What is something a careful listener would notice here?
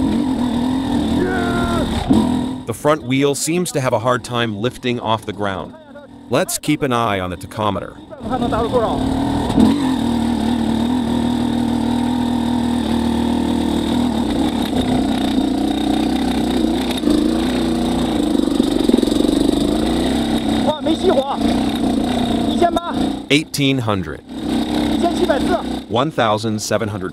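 A two-stroke dirt bike engine putters and revs at low speed.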